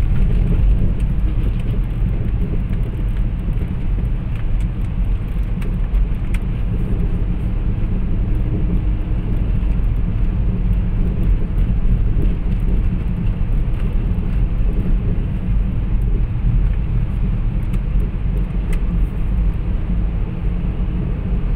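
A car drives at speed, heard from inside, with a low road rumble.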